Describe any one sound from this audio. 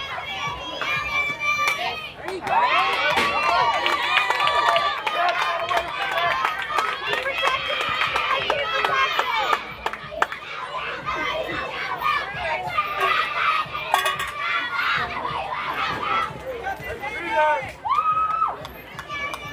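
Young girls cheer and chant loudly outdoors.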